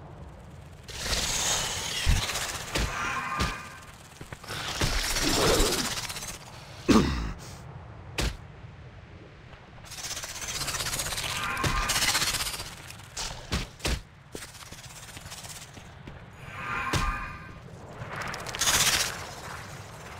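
Magic spells whoosh and crash in a fight with giant spiders.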